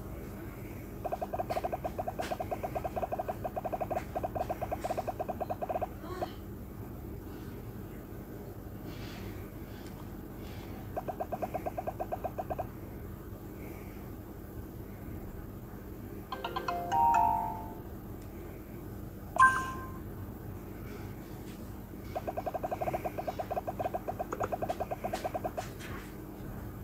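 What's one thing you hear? Rapid electronic blips tick as balls bounce off blocks in a game.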